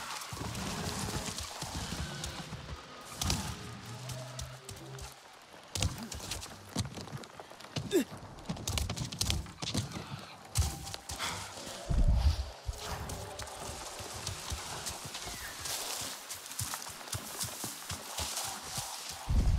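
Leaves and plants rustle as someone pushes through them.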